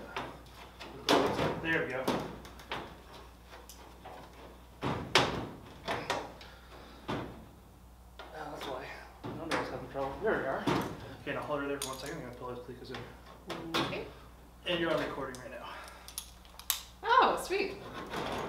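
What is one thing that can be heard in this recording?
Thin metal panels rattle and knock.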